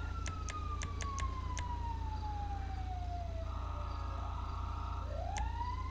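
Short electronic clicks tick several times in quick succession.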